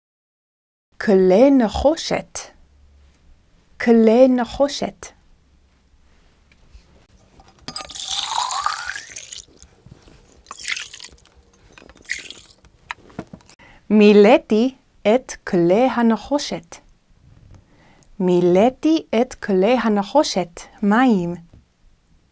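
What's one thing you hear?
A young woman speaks clearly and calmly into a close microphone.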